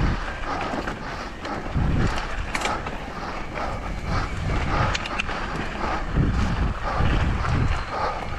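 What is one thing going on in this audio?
A bicycle frame clatters and ticks over bumps.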